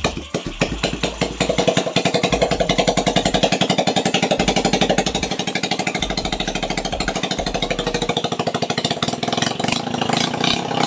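A small engine idles with a fast, steady putter close by.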